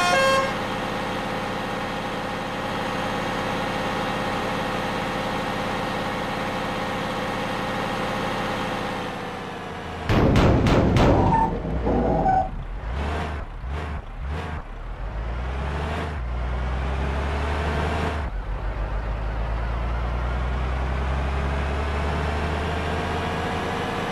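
A diesel engine of a backhoe loader hums steadily.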